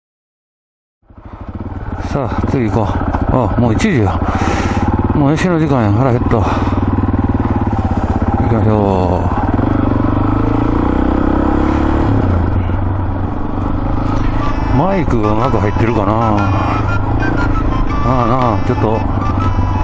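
A motorcycle engine revs up and down as the bike rides along.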